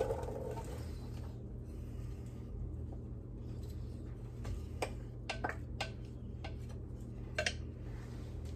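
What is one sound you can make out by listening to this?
A wooden spoon knocks lightly against a pan while stirring.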